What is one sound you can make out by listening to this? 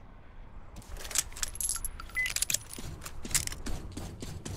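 A gun's metal parts click and clack as it is handled.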